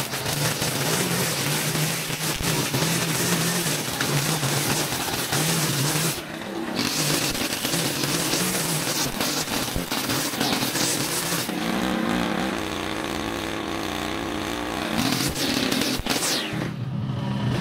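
A string trimmer whines loudly, its engine rising and falling as it cuts through tall grass.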